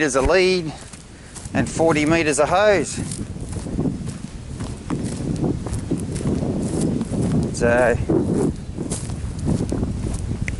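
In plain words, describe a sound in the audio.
Footsteps crunch over dry leaves and twigs.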